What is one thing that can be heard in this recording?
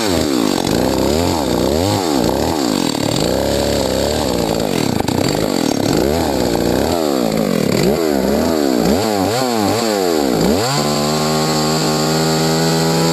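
A chainsaw engine revs up and down again and again, then settles into a steady drone.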